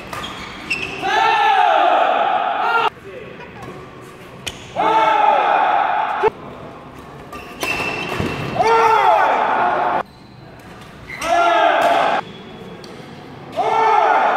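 Sports shoes squeak on an indoor court floor.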